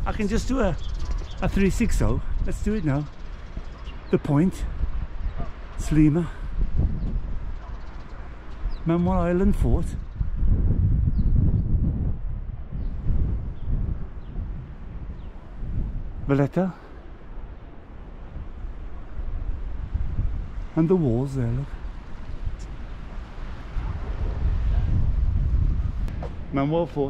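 A middle-aged man talks with animation close to the microphone, outdoors in wind.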